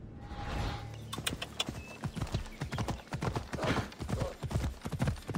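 A horse gallops over grass with heavy, rapid hoofbeats.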